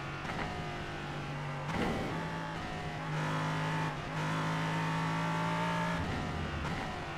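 A racing car engine roars, its pitch dropping and rising between gears.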